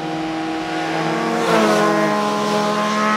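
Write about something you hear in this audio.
Motorcycle engines roar loudly as they pass close by.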